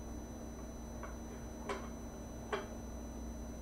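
A small wooden object taps and clicks softly.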